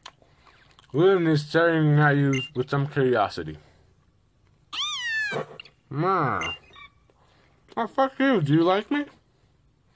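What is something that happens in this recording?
A small cartoon cat creature gives high, mewing cries through a small game speaker.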